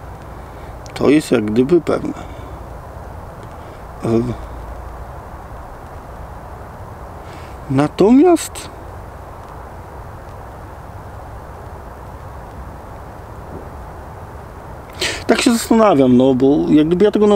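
A man speaks calmly and close by, with pauses.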